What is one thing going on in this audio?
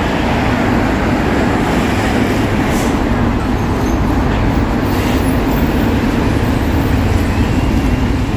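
Traffic hums steadily along a wet road.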